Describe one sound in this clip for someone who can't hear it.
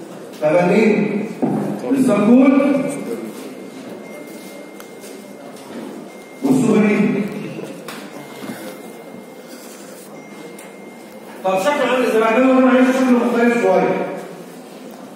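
A man speaks into a microphone in a lecturing tone, heard through a loudspeaker in an echoing room.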